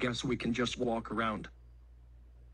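A young man speaks quickly and animatedly, close up.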